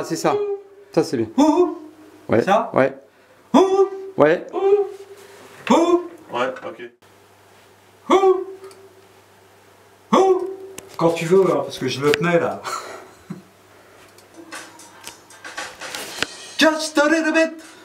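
An older man sings closely into a microphone.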